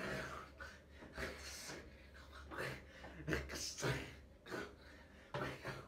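A young man beatboxes close by, with rhythmic bursts of puffs, clicks and hums.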